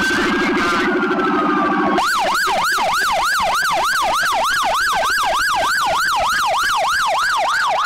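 Police sirens wail close by in a fast, rising and falling yelp.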